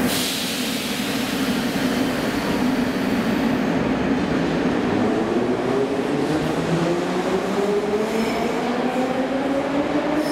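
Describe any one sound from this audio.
Train wheels rumble and clatter on the rails.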